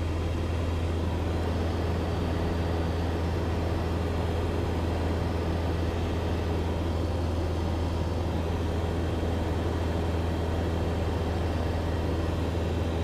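Wind rushes past the aircraft.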